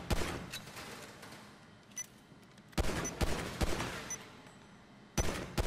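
Pistol shots crack and echo in a large hall.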